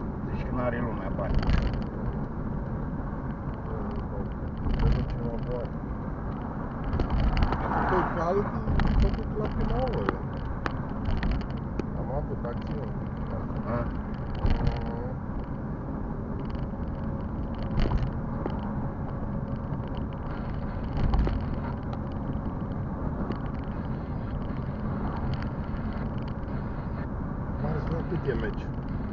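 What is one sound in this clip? Tyres roll and rumble over the road, with occasional thumps.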